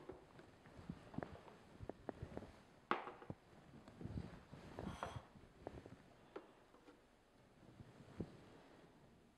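Plastic parts click and knock together as a juicer is assembled.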